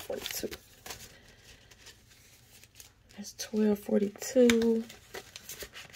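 Plastic binder pages rustle as they are turned.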